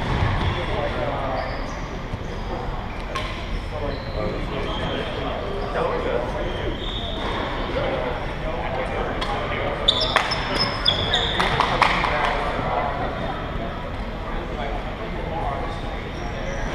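A crowd of young people chatters nearby.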